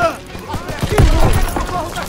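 A rifle fires a shot close by.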